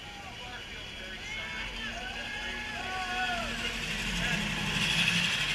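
Small electric go-karts whir past close by, growing louder.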